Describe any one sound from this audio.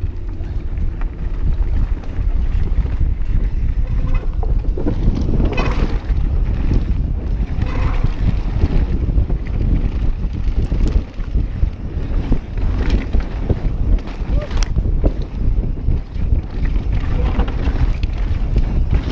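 Bike tyres crunch and rattle over a dirt trail.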